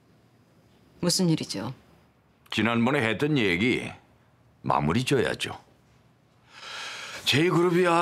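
A middle-aged man speaks with feeling, close by.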